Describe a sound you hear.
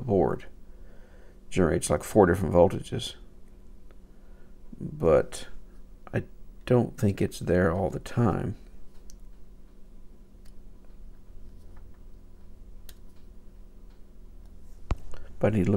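Metal probe tips tap lightly on a circuit board.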